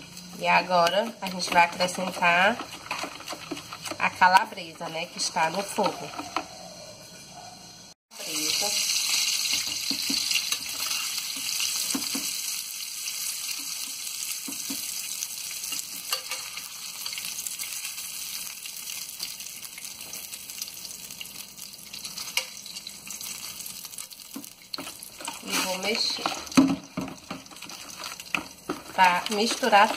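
A fork beats egg batter in a plastic bowl.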